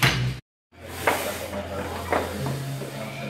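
Metal weight plates clank.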